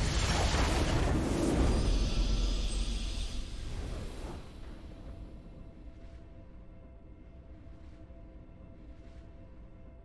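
A triumphant victory fanfare swells and slowly fades away.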